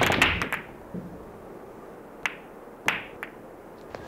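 Billiard balls click together.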